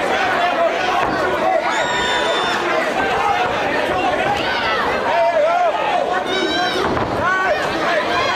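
Gloved punches thud against a boxer's body.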